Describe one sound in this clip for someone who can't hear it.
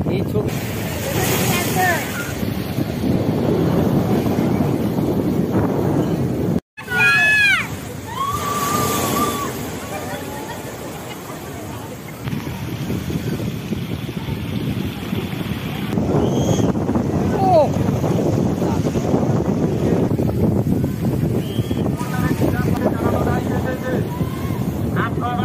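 Waves crash and roar against a sea wall outdoors in wind.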